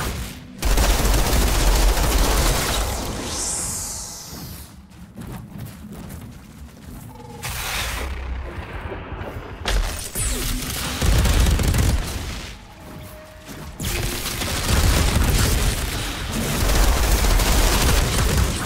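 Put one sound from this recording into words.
A large creature screeches and flaps its wings.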